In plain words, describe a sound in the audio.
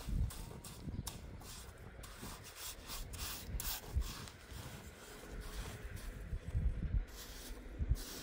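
A trowel scrapes and pats wet cement on a plastic sheet.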